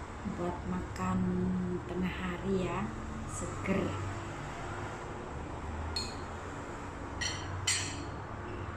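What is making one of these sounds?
A metal spoon clinks against a ceramic bowl.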